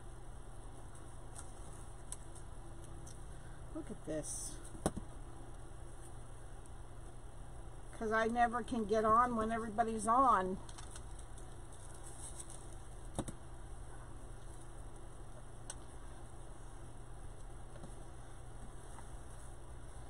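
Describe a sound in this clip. Stiff mesh ribbon rustles and crinkles as hands handle it.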